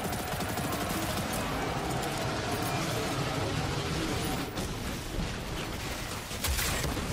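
Rapid gunfire and blasts ring out in a game.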